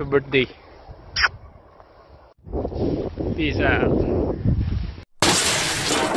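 A young man speaks close to a microphone, outdoors in wind.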